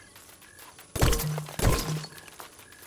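A cartoonish blaster fires in a couple of loud, booming bursts.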